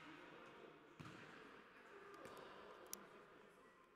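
A ball thuds as it is kicked on an indoor court.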